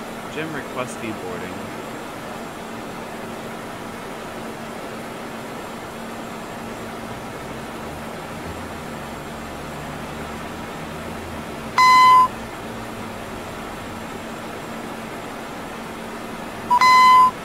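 A jet engine hums steadily at idle.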